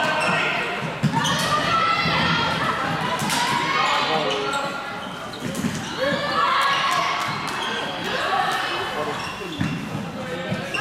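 Plastic sticks clack against a ball in a large echoing hall.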